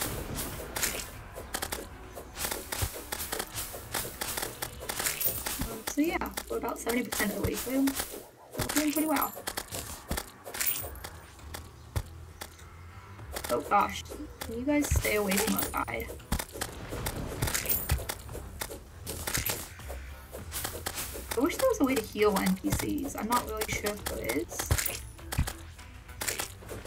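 A sword swings and strikes creatures with quick, sharp hits.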